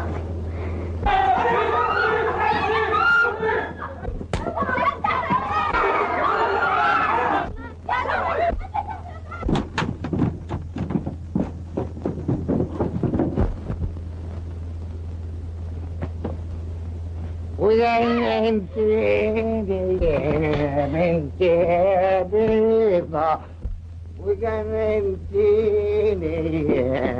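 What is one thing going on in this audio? A woman sings a mournful song with strong feeling.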